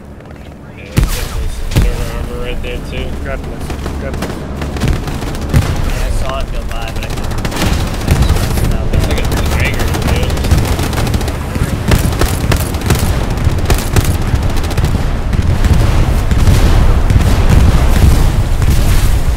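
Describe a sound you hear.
Gunshots crack repeatedly in a battle.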